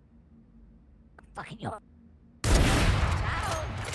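A sniper rifle fires a loud, sharp shot.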